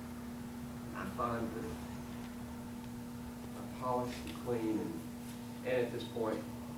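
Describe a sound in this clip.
An elderly man speaks calmly, close by, in short phrases.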